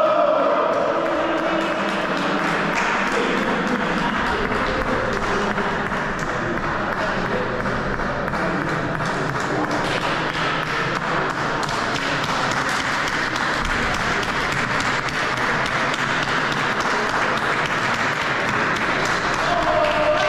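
A group of young men cheer and shout together in a large echoing hall.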